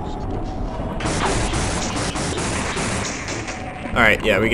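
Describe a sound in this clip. An energy beam weapon fires with a loud, crackling hiss.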